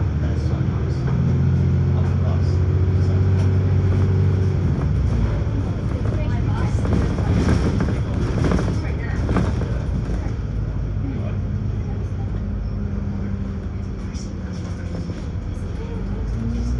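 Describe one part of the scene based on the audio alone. A bus engine hums and rumbles steadily as the bus drives along.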